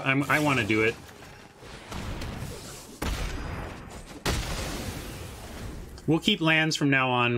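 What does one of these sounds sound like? Game effects whoosh and crackle.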